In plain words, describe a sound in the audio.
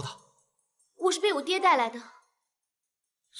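A young woman answers calmly, close by.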